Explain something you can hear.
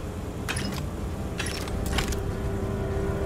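Short clinking clatters sound as items are picked up.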